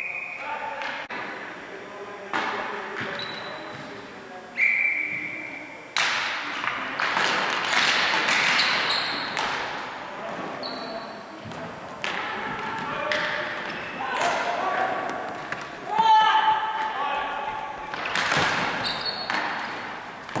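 Sticks clack and balls knock on a hard floor in a large echoing hall.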